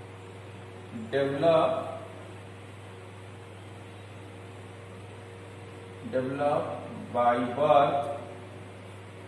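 A man speaks calmly and slowly, close by, in short phrases.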